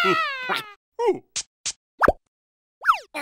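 A cartoon creature gasps in surprise.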